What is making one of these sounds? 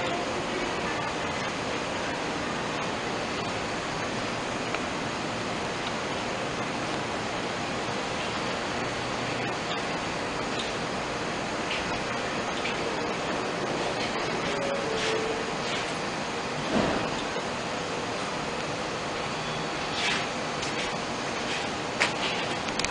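A subway train rumbles and hums steadily at a station.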